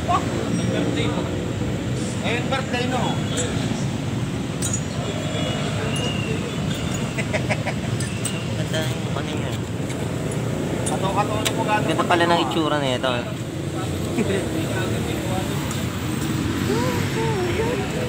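A motorcycle engine idles with a steady, low rumble.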